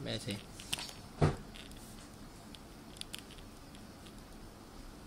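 A marker squeaks and scratches softly on paper.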